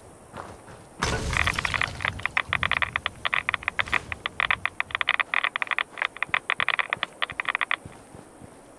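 A radiation counter crackles with rapid clicks.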